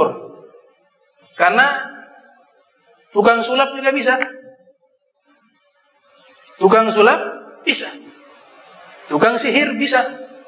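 A man speaks calmly into a microphone in short phrases, with pauses, in a room with a slight echo.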